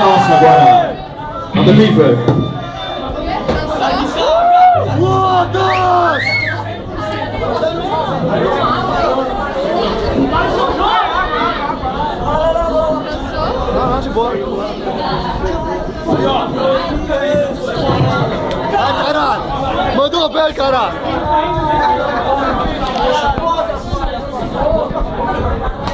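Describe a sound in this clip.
A young man shouts and sings through a loudspeaker.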